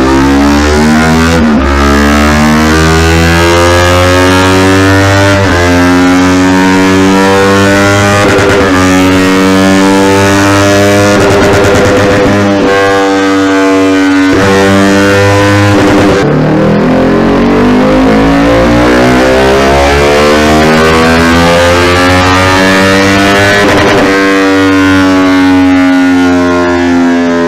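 A motorcycle engine roars loudly, repeatedly climbing in pitch as it runs up through the gears.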